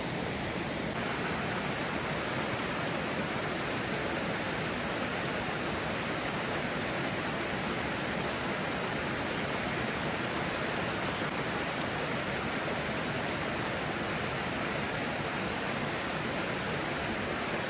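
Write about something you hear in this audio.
A stream of water flows and rushes steadily outdoors.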